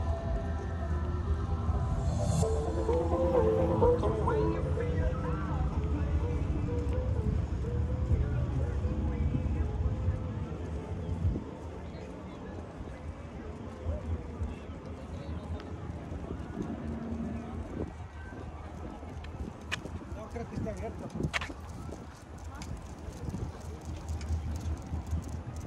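Bicycles roll past on a paved path.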